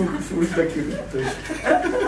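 A young woman laughs brightly up close.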